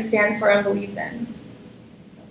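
A woman speaks through a microphone in a large hall.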